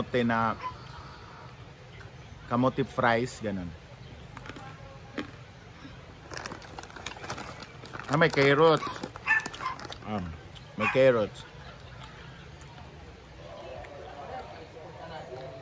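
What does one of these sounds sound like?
A young man crunches on a crispy snack.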